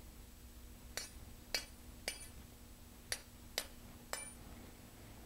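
Small metal parts click sharply a few times.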